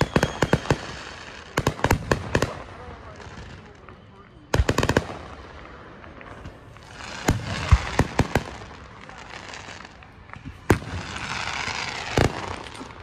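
Fireworks burst with sharp cracks and booms in the distance.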